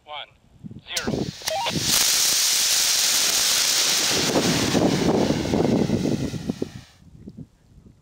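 A rocket motor fires with a loud roaring hiss, then cuts out.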